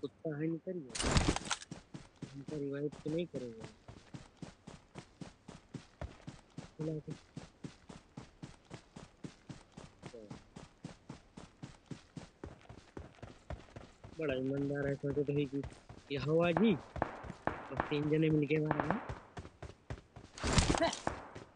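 Footsteps run quickly and steadily over grass and dirt.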